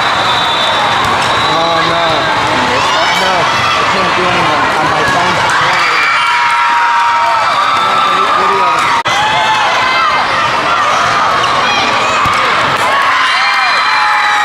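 A crowd of players and spectators chatters and cheers in a large echoing hall.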